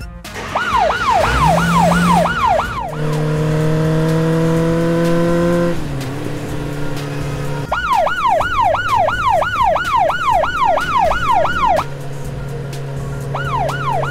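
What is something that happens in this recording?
A police siren wails in quick rising and falling sweeps.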